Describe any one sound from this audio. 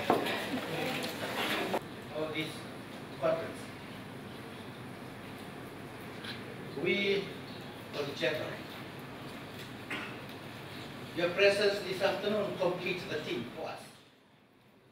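A man speaks steadily through a loudspeaker in a large room.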